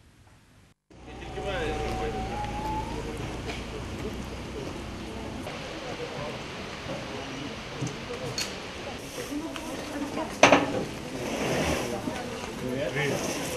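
Outdoor street noise hums steadily.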